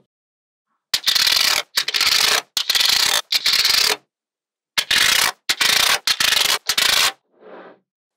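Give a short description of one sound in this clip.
A thin plastic sheet scrapes and rustles as it slides.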